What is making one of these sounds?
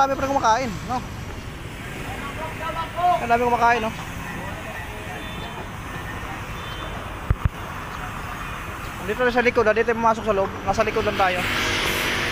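A man talks nearby, outdoors among a busy crowd.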